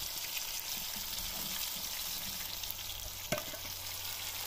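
An egg cracks against a pan's rim.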